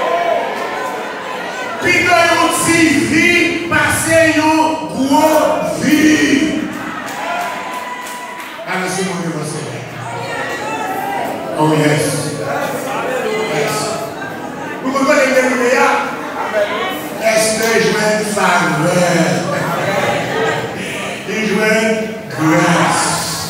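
A man preaches with passion into a microphone, heard through loudspeakers in an echoing hall.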